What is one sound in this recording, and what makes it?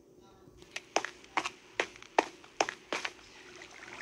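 A pickaxe strikes stone with sharp clicking taps.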